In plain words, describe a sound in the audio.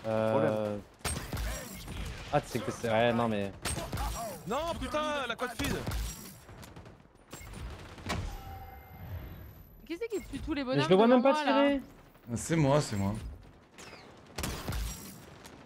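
Rifle shots crack.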